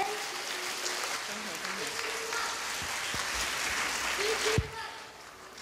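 A group of children sing and shout together loudly in a large hall.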